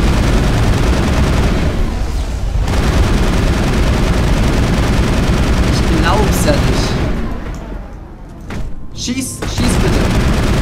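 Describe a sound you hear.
Rapid gunfire blasts loudly.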